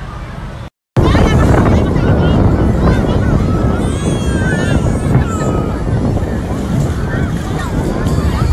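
Children shout and laugh while playing in the water.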